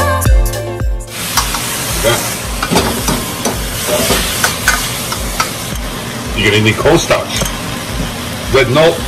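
Food sizzles loudly in a hot wok.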